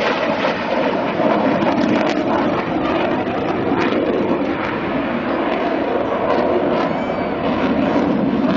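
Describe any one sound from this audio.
A jet plane roars loudly overhead.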